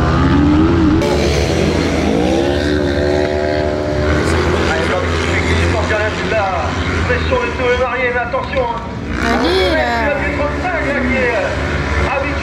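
Off-road cars rev their engines at a distance outdoors.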